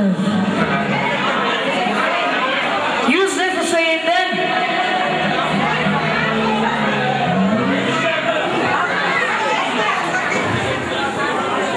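Men and women chatter and talk over one another nearby, in a lively crowd.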